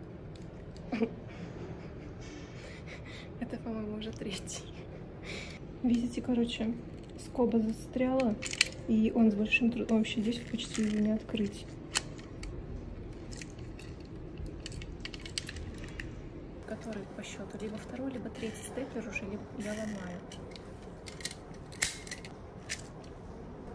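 A stapler clicks sharply.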